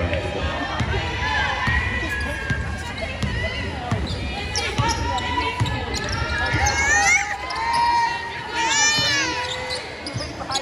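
Basketball shoes squeak sharply on a hardwood court in a large echoing gym.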